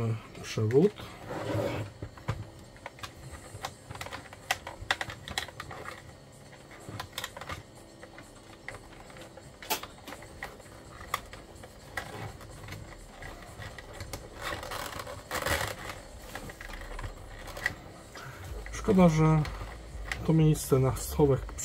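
Plastic casing clicks and rattles as hands handle it.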